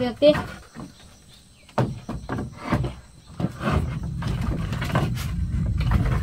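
Wooden boards knock and clatter as they are handled.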